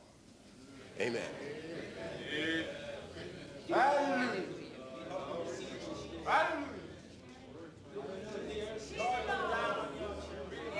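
A man preaches with fervour, his voice echoing in a large hall.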